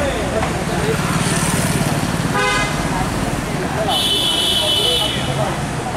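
A crowd of people chatters loudly outdoors.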